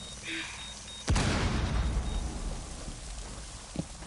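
A body drops heavily through a hatch in a video game.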